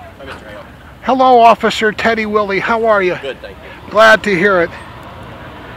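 A man speaks loudly and animatedly close by, outdoors.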